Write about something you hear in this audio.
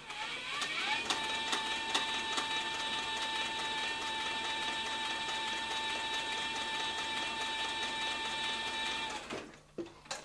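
A sewing machine runs with a steady high whine.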